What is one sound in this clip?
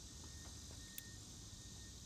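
A fishing reel clicks.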